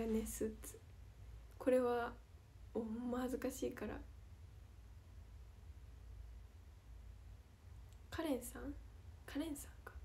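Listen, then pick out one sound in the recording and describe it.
A young woman speaks softly and cheerfully close to a microphone.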